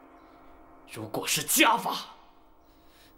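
An older man speaks in a low, stern voice.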